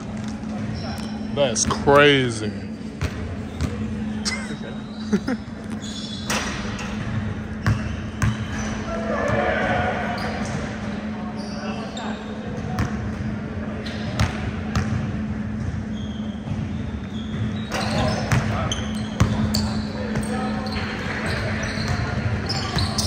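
Young men talk and call out in a large echoing gym.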